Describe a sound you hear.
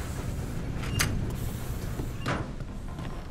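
A metal door clanks open.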